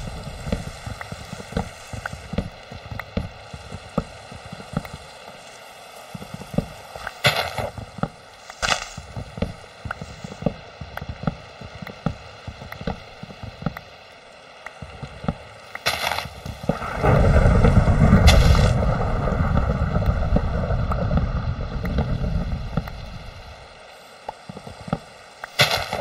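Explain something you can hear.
An axe chops repeatedly at wood with quick knocks.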